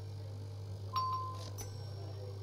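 A short electronic chime rings once.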